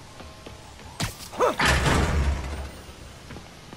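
Double doors burst open with a loud bang and rumble.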